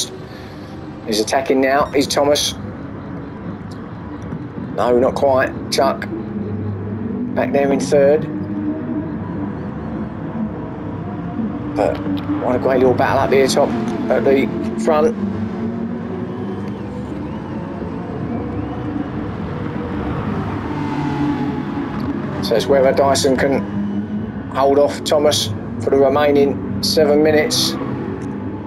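Racing car engines roar and rev up and down.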